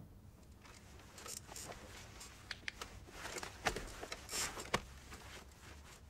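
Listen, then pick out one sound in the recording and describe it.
Bedsheets rustle as a man shifts in bed.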